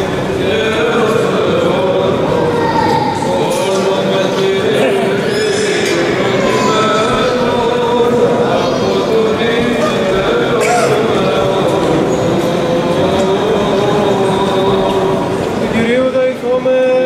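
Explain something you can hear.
A group of men chant together in a large echoing hall.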